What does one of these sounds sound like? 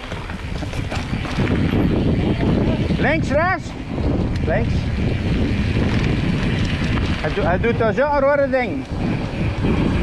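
Bicycle tyres roll steadily over a paved road.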